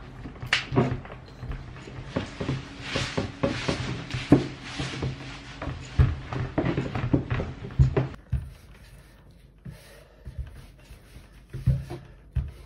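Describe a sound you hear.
A glass bottle rolls over dough and knocks on a table.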